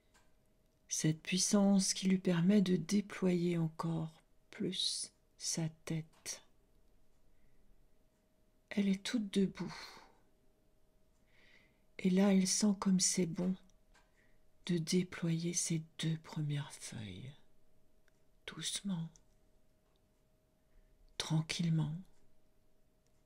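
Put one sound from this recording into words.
A middle-aged woman speaks slowly and calmly, close to the microphone, with long pauses.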